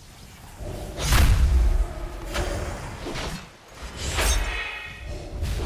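A magic spell strikes with a loud, booming burst.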